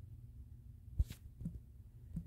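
A game interface gives a short click as a menu pops open.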